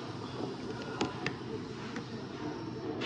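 Small plastic parts click softly in gloved hands.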